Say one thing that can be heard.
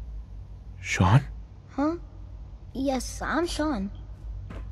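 A young boy speaks hesitantly and quietly.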